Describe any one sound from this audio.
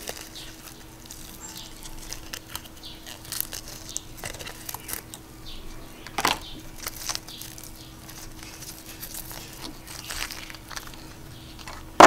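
Plastic netting rustles and crinkles as it is pulled apart.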